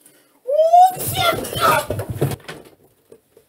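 Bodies thump and rustle as people scuffle.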